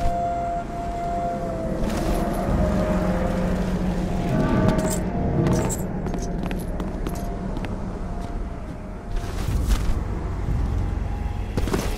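Large wings beat and whoosh through the air.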